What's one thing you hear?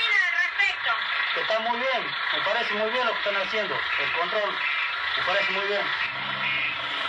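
A woman speaks close to a microphone.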